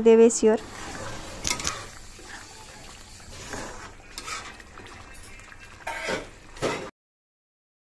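A spatula scrapes and stirs in a metal pan.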